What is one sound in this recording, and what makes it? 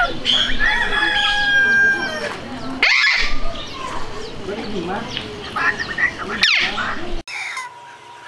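A parrot squawks and screeches loudly.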